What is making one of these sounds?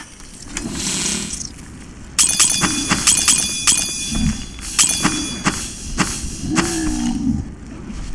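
Game menu sounds click as items are moved around an inventory.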